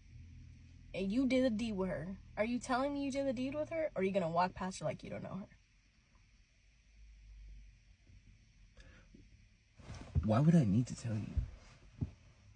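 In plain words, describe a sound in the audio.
A young woman talks nearby in a casual, lively way.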